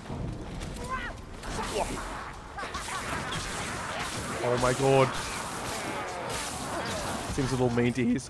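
Blows and explosions thud in a fight.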